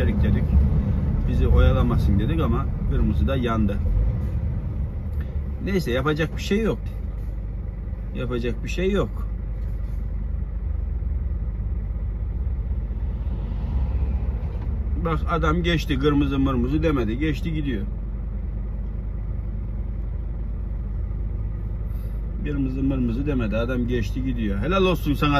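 A vehicle engine hums low and steady while driving.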